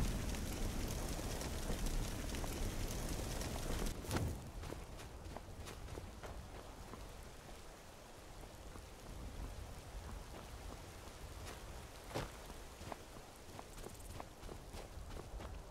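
Footsteps crunch over snow and rock.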